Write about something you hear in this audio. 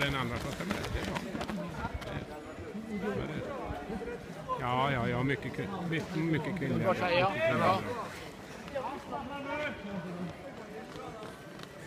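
Running footsteps patter on a track.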